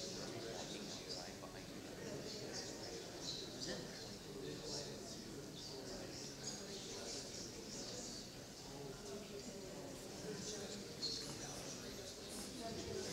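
A crowd of men and women chatters all around in a large echoing hall.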